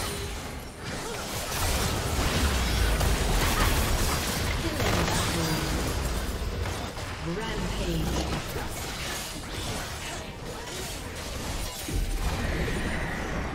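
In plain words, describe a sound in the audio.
Spell effects crackle and burst in a game battle.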